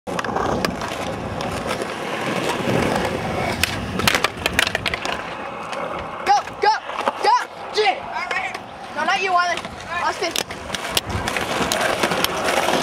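Skateboard wheels roll and rumble on rough pavement.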